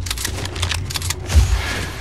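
Leaves rustle as a figure pushes through a bush.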